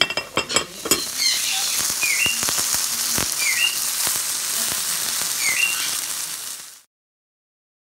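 Fish fillets sizzle in oil in a frying pan.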